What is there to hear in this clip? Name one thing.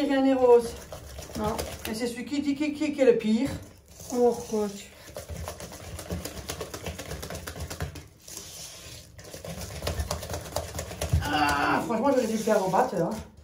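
A spoon scrapes and stirs batter in a metal bowl.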